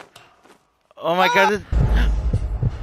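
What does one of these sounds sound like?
A man screams while falling.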